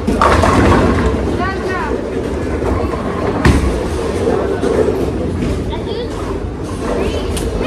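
Many men and women chatter in the background of a large, echoing hall.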